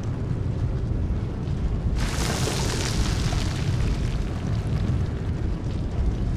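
A deep, heavy rumble rolls on throughout.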